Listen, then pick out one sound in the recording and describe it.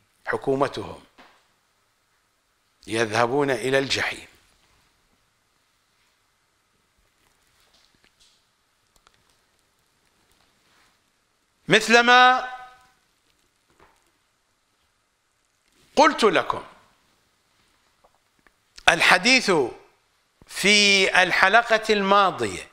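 An elderly man speaks with animation in short bursts into a close microphone.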